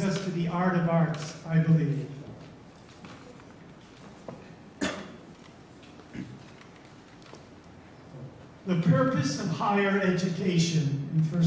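A middle-aged man speaks calmly into a microphone in an echoing hall, pausing between phrases.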